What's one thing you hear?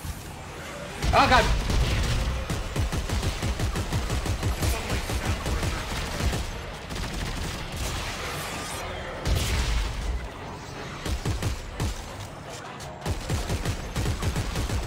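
Gunfire and blasts thump and crackle.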